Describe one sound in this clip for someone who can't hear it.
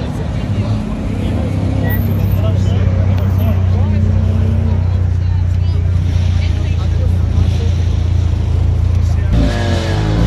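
A sports car engine idles with a deep, steady rumble close by.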